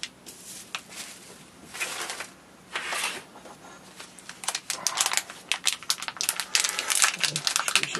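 A foil bag crinkles sharply in hands.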